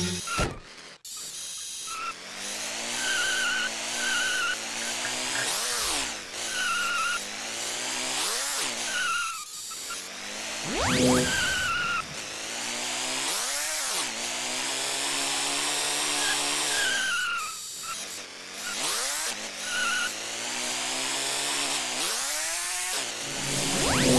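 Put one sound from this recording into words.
A toy car's electric motor whines, rising and falling in pitch as it speeds up and slows down.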